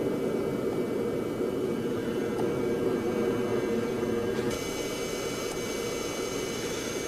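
An aircraft cabin hums steadily with engine noise.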